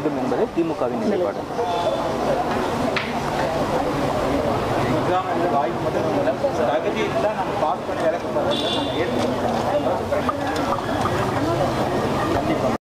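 A crowd of women talk over each other loudly and excitedly close by.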